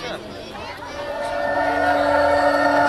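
Music with a steady tone plays loudly over a loudspeaker.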